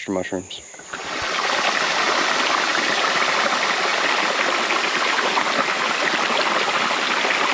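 A shallow stream rushes and gurgles over rocks and branches.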